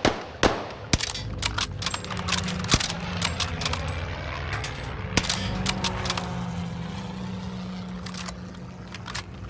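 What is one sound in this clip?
Single rifle shots crack loudly.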